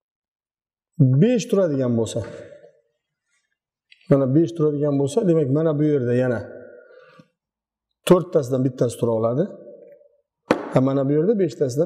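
A man speaks calmly and clearly, explaining.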